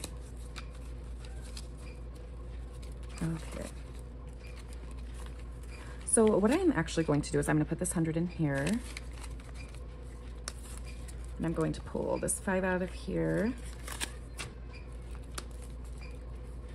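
Paper banknotes rustle and crinkle as they are handled.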